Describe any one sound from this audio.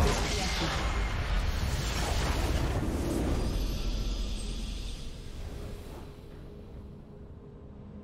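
A booming game victory effect swells and then slowly fades.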